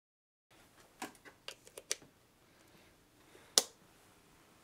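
Fingers click and tap on the buttons and knobs of a small device, close by.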